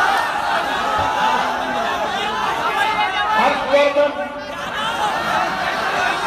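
A man speaks forcefully through a loudspeaker, his voice echoing outdoors.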